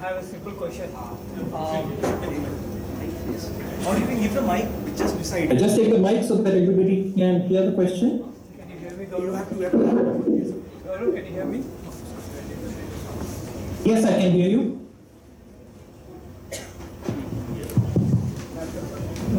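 A woman speaks through a loudspeaker on an online call.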